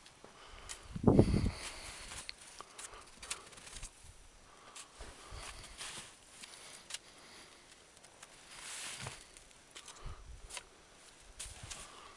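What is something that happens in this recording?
Trekking poles poke into snow.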